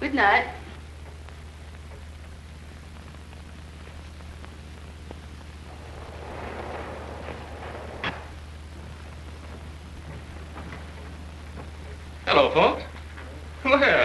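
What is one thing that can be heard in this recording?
A man speaks in short, animated bursts.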